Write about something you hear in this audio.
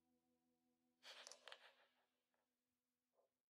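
Dice clatter and roll across a wooden table.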